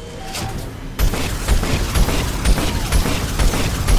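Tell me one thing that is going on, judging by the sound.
Gunfire and explosions thud in rapid bursts.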